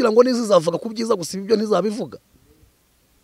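A man speaks with emotion close to a microphone.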